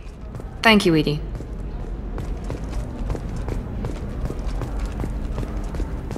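Footsteps thud quickly on a hard metal floor.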